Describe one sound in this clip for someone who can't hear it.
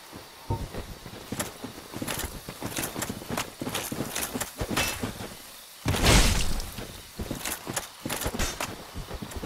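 Armoured footsteps crunch on the ground.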